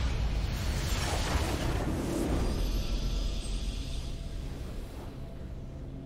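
A triumphant magical whoosh swells and fades.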